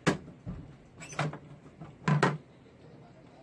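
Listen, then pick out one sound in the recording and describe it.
A wooden box rattles and knocks as it is lifted and tipped.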